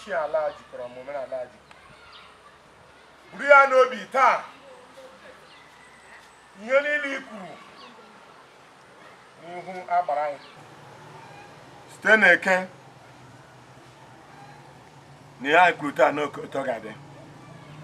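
A man speaks slowly and solemnly in short phrases, close by.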